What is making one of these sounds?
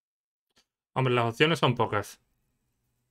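A man speaks briefly with animation, close to a microphone.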